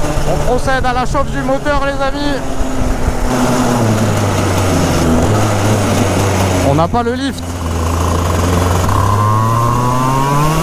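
A small kart engine buzzes loudly close by, revving up and down.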